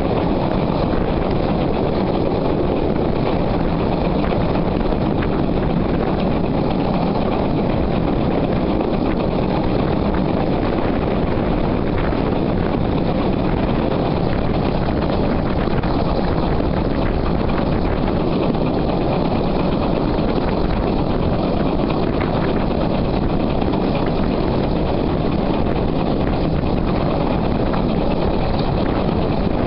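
A steam locomotive chugs steadily along the track.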